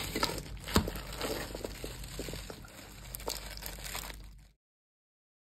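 A fork clicks and rustles through a leafy salad.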